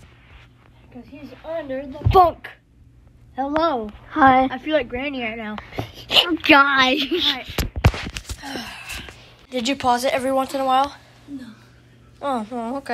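A young boy talks with animation, close to the microphone.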